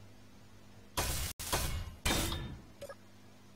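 A welding tool buzzes and crackles in short bursts.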